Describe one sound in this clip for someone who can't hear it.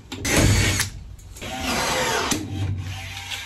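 A cordless power drill whirs in short bursts close by.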